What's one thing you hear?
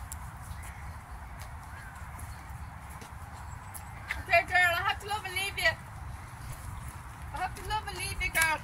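An elderly woman's footsteps pad softly on grass and pavement.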